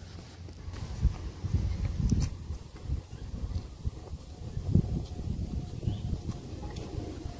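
Footsteps scuff on a paved path.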